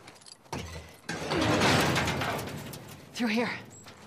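A heavy wooden gate creaks and scrapes open.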